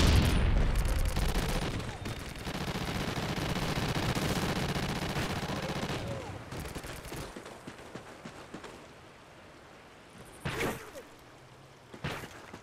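Footsteps tread quickly over grass and gravel.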